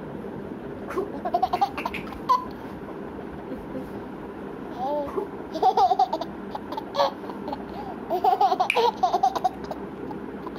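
A baby giggles and squeals with delight close by.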